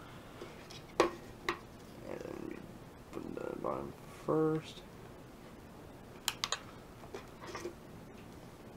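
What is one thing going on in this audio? Plastic parts click and snap as a handheld game console's cover is fitted.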